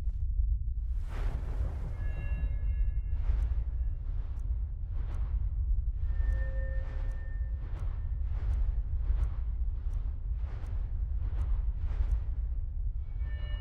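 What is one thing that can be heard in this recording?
Airy whooshes sweep past, one after another.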